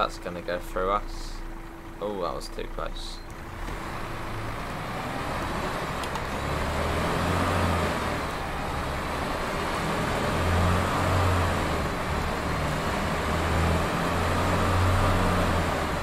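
A bus engine hums and revs, growing louder as the bus drives.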